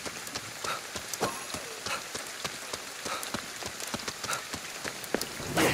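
Rain falls steadily and patters on the street.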